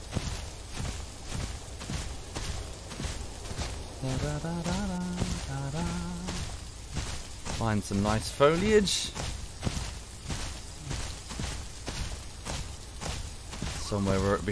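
Undergrowth rustles as a large animal walks through it.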